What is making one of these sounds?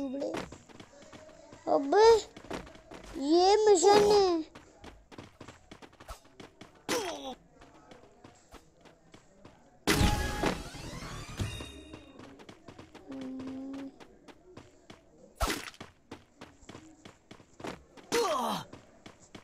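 Quick footsteps tap as a game character runs.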